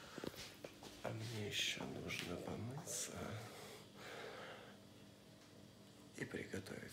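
A man talks animatedly close to the microphone.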